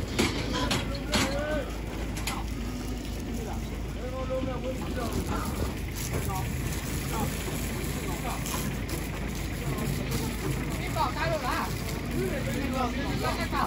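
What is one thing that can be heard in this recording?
A metal cage clanks and rattles.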